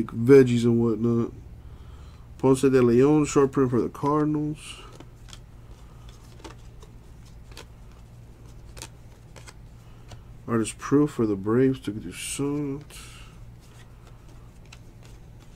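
Trading cards slide and flick against each other in quick, light clicks.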